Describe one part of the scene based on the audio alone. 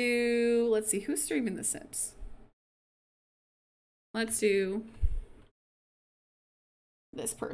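A young woman talks expressively into a close microphone.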